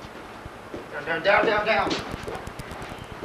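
A man grunts loudly as he is thrown.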